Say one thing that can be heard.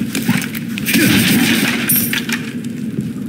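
A wooden crate smashes and splinters.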